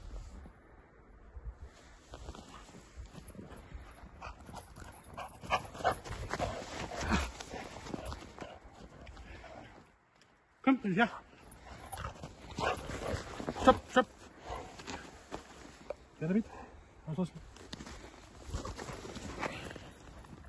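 Footsteps crunch in snow close by.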